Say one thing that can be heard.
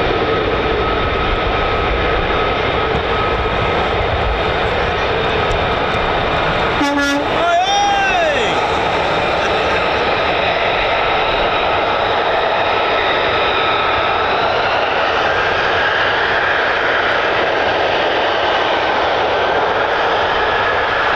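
Jet engines roar steadily in the distance.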